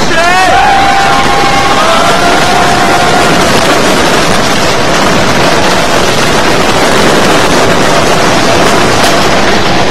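A roller coaster rattles and roars along a wooden track.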